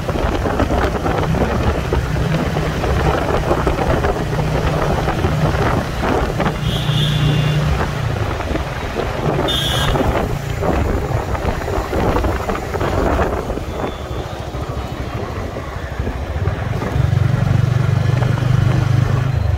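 A motorcycle engine hums steadily.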